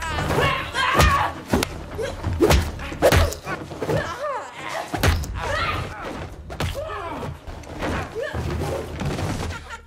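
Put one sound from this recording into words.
Heavy blows and thuds land during a struggle.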